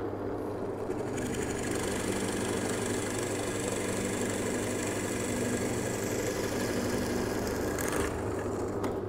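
A drill bit bores into wood with a rasping whir.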